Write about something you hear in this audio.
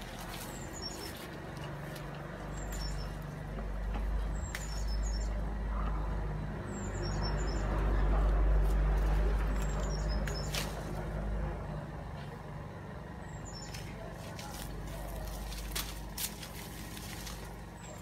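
Leaves rustle as fruit is pulled from a tree branch.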